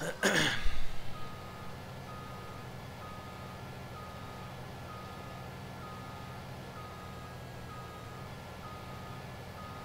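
A large farm machine's engine idles with a steady low hum.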